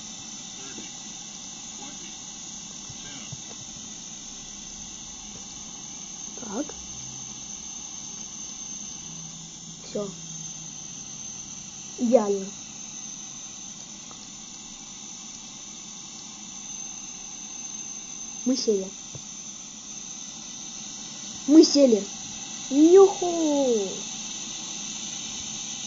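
A jet engine hums and whines steadily at idle.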